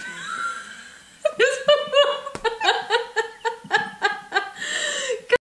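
Another young woman laughs, close by.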